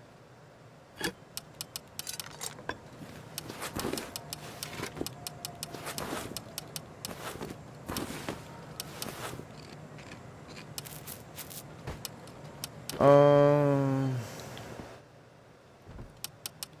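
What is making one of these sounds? Soft menu clicks tick in quick bursts.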